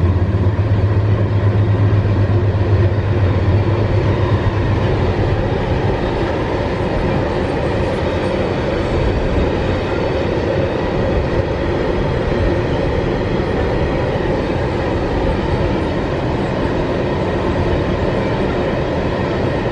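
Steel wheels squeal and screech on a curve.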